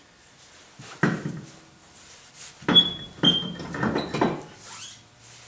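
A tyre thumps against metal as it is lifted onto a wheel hub.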